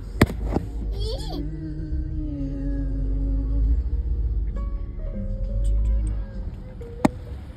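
A man talks close by inside the car.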